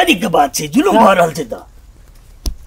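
A man speaks loudly and close by.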